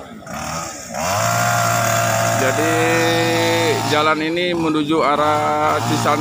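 A chainsaw engine runs and revs up and down.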